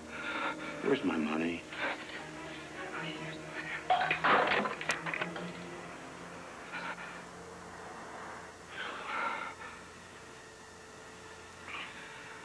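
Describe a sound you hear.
A middle-aged man speaks in a low, tense voice.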